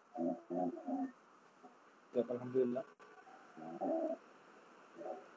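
A man speaks in short bursts over an online call.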